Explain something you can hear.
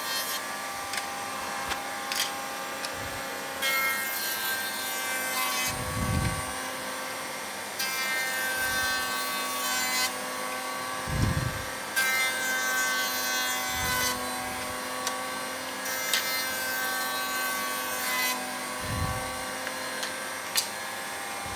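Wooden strips knock against a metal table.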